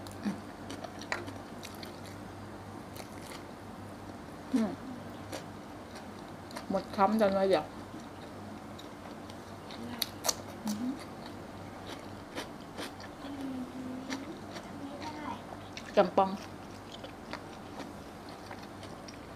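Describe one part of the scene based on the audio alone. A woman chews and crunches on food close by.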